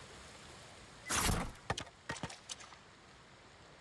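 A sword slashes through bamboo with sharp swishes.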